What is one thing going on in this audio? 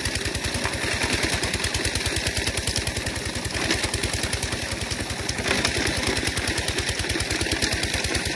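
A stone-crushing machine rumbles and rattles loudly and steadily.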